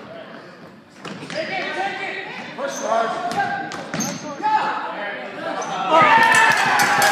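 Voices of spectators and players call out, echoing in a large hall.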